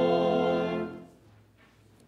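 A choir sings together.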